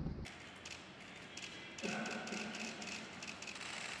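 A man sprays disinfectant with a hissing backpack sprayer.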